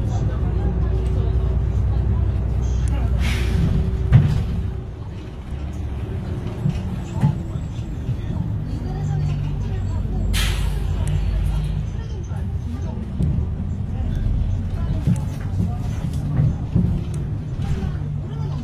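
The bus body rattles and knocks as it drives over the road.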